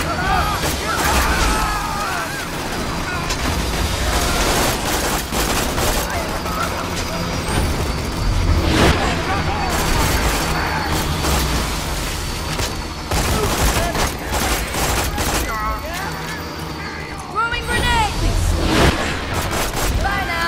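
A gun fires rapid bursts of shots.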